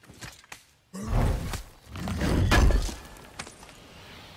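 A heavy lid bursts open with a loud rumbling whoosh.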